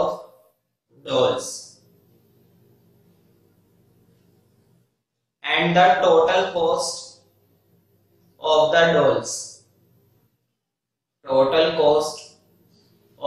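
A young man speaks calmly in short phrases close by, with pauses between them.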